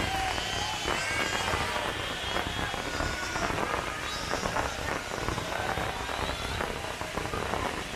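Fireworks boom with deep thuds.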